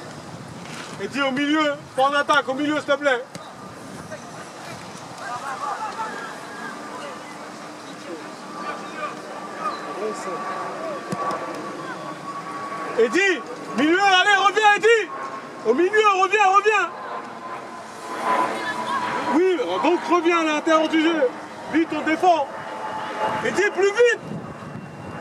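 Teenage boys shout to each other outdoors.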